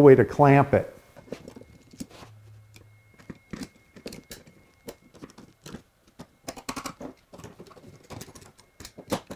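A pencil scratches and taps on wood.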